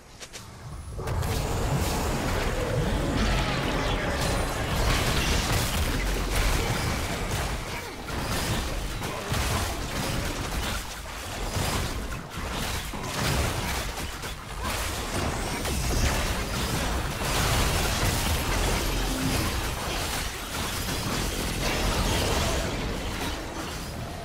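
Spell blasts, hits and crashes ring out in a busy fight.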